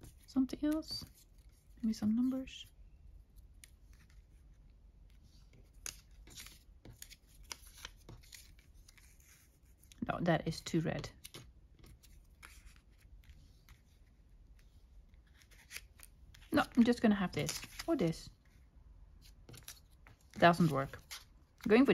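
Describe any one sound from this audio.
Paper pieces rustle and tap softly as they are handled and placed.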